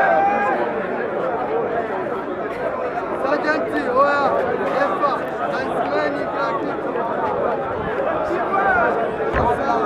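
A crowd of people talks and shouts all around, outdoors.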